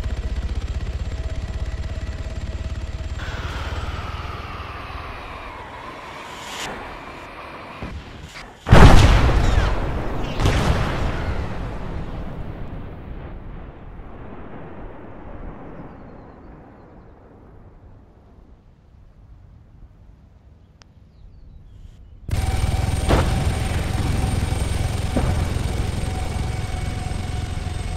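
A helicopter's rotor thumps and its engine whines.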